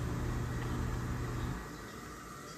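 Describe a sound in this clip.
A wall switch clicks.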